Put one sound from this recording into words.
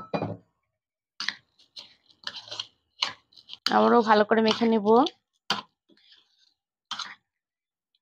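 A spoon scrapes and clinks against a bowl while mixing food.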